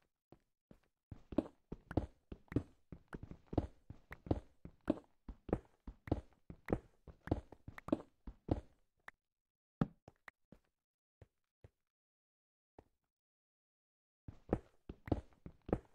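A pickaxe chips rapidly at stone in quick repeated knocks.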